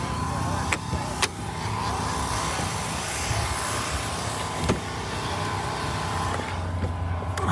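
A car engine runs loudly close by.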